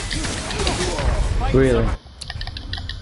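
A monster roars and weapons clash in a fierce fight.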